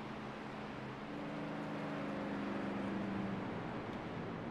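A race car engine roars as the car speeds past.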